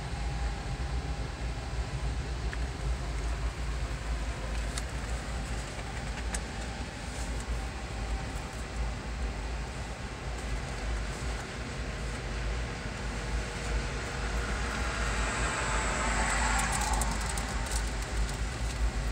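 A freight train of empty autorack cars rumbles and clatters past at a distance.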